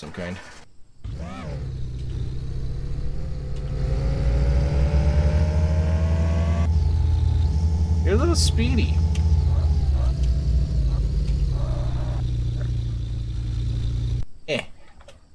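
A small car engine starts, revs and hums as the car drives off, then idles down.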